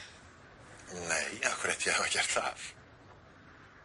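A man speaks cheerfully.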